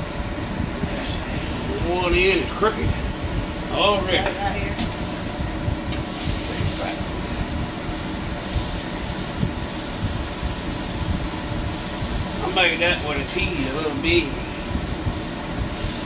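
Raw meat sizzles in a hot frying pan.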